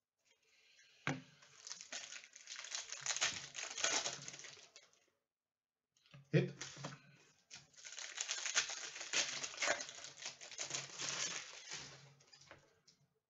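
A foil wrapper crinkles and rustles in bursts.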